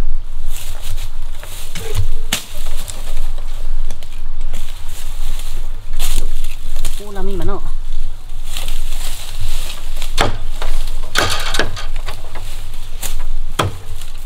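Bamboo stems knock and clatter.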